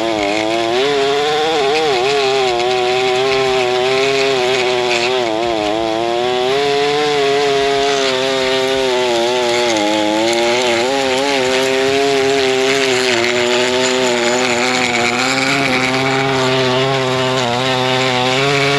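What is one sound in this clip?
A petrol lawn edger's engine runs loudly up close, its pitch wavering up and down.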